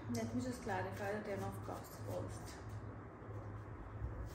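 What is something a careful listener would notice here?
Cards rustle and slide as a young woman shuffles them.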